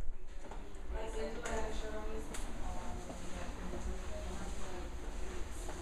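A small robot rolls across a hard floor with a low whir.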